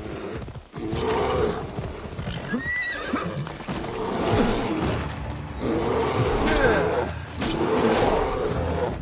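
A bear growls and roars loudly up close.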